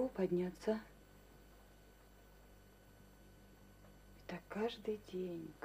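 A woman speaks calmly nearby, in short phrases with a pause between them.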